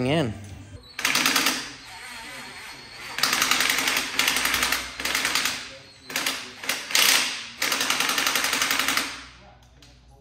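A power tool whirs in short bursts on an engine.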